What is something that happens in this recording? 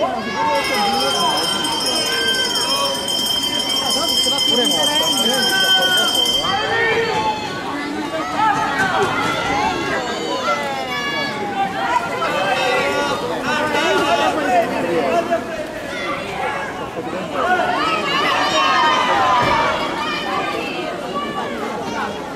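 A crowd of spectators cheers and shouts from close by.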